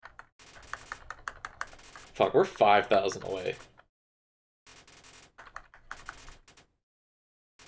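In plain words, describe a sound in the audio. Quick electronic blips chirp as game text types out.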